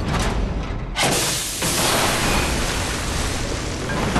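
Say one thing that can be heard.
A capsule door hisses open with a burst of steam.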